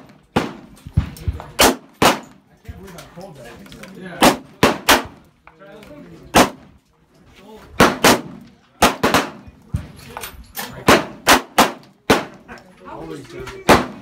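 A handgun fires sharp shots outdoors, one after another.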